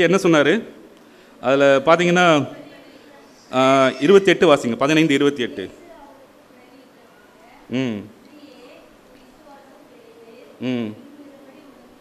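A middle-aged man reads aloud slowly through a microphone, pausing between phrases.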